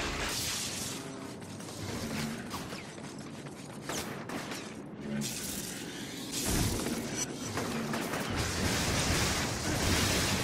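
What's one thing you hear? Electricity crackles and zaps loudly.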